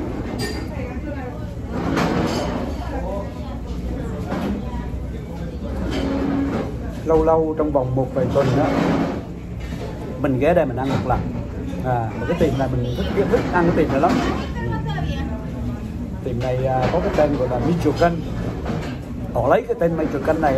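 A middle-aged man talks calmly and closely into a microphone.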